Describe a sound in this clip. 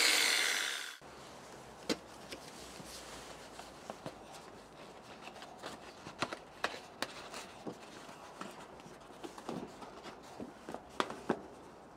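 A sheet of paper rustles and crinkles in someone's hands.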